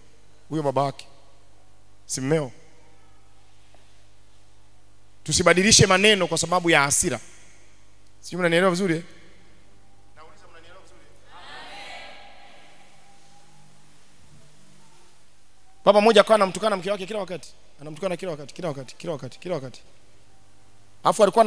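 A man speaks with animation into a microphone, heard through loudspeakers, in short bursts with pauses.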